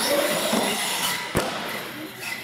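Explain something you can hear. A toy truck lands hard on the floor.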